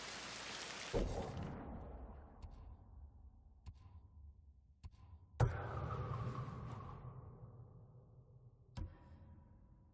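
Soft interface chimes sound briefly.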